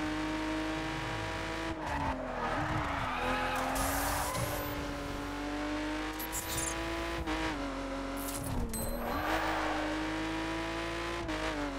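A car engine roars steadily at high revs, dipping briefly at gear shifts.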